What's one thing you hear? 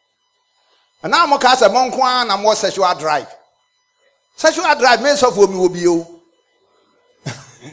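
A middle-aged man speaks forcefully into a microphone, heard through loudspeakers in a large room.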